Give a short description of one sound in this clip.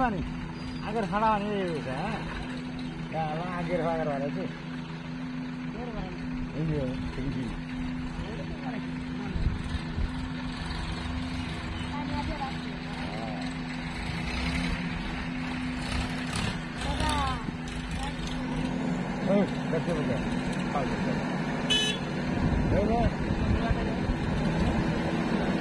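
A tractor engine chugs as it drives past.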